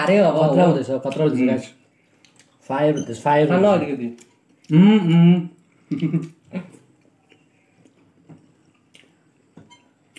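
Young men chew and slurp food.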